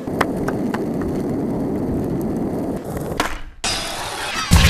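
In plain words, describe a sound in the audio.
Skateboard wheels roll over smooth pavement.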